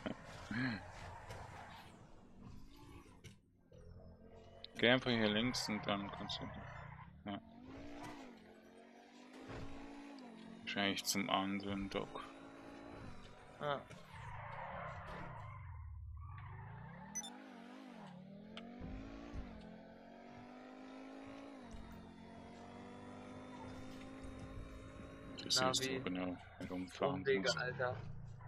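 A sports car engine roars, revving up and down as gears change.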